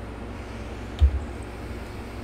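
A game menu opens with a soft click.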